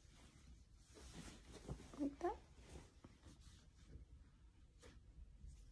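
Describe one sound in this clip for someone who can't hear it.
A young woman speaks softly and close into a phone microphone.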